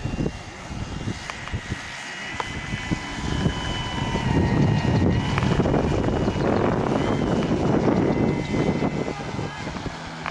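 A small model aircraft engine buzzes overhead, growing louder as it passes close by and then fading.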